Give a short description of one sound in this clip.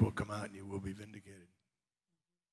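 An elderly man speaks calmly into a headset microphone.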